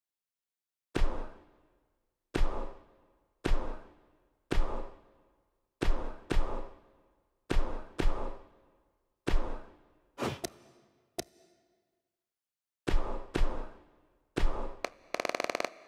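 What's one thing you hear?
A video game menu plays short whooshing selection sounds as choices change.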